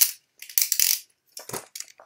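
A spinning top whirs and rattles in a plastic dish.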